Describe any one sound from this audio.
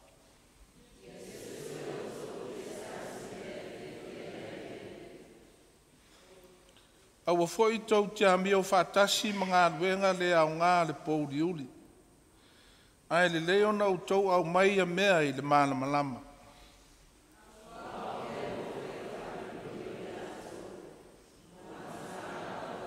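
A group of women read aloud together in a low murmur.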